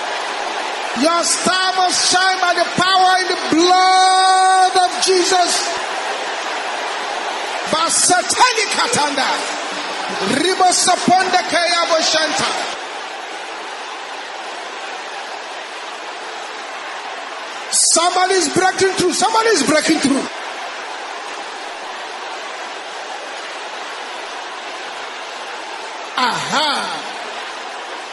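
A man speaks loudly and fervently through a microphone.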